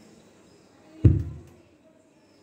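A power switch clicks on with a deep thump from the speakers.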